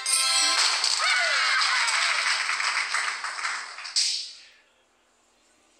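Sparkly magical chimes twinkle and shimmer, then quickly fade away.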